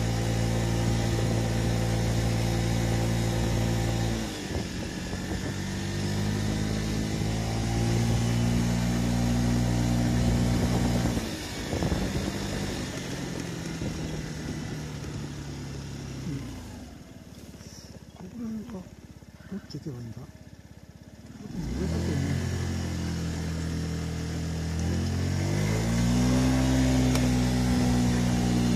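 A motor scooter engine hums steadily, dropping and rising in pitch as the rider slows and speeds up.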